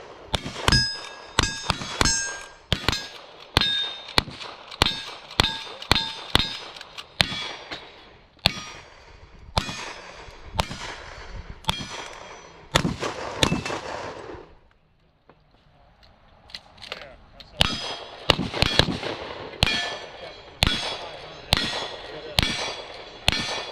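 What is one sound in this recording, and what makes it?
Gunshots fire in quick succession outdoors, echoing across open ground.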